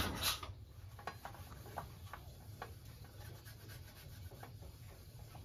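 A metal plate taps and rattles on handlebars.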